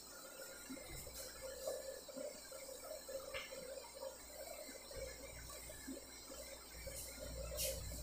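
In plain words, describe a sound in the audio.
A duster rubs across a whiteboard.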